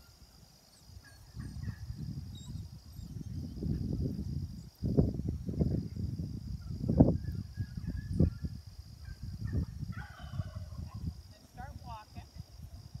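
Wind buffets a nearby microphone outdoors.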